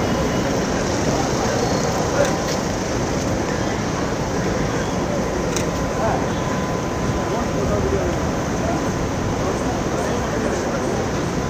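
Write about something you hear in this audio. A crowd of men murmurs and chatters outdoors.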